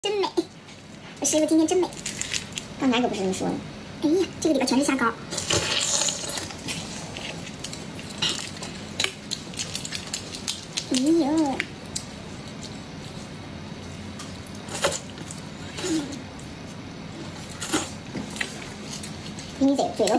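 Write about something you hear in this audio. Crayfish shells crack and crunch under a young woman's fingers.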